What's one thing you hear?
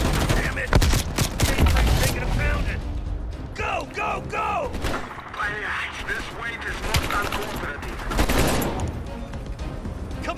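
A rifle fires repeated loud shots.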